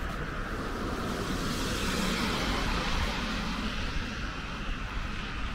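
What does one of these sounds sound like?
A car drives past on a wet road, rising and fading.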